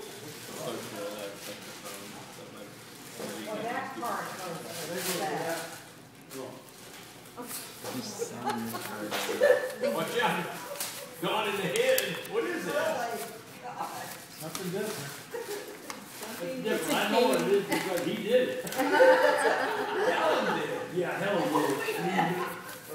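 Several adults talk and chat nearby.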